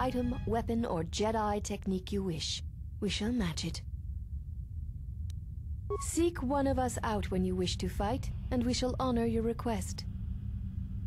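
A young woman speaks calmly and evenly.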